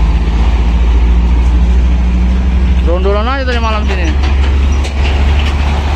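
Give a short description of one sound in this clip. A heavy truck engine rumbles close by as it passes.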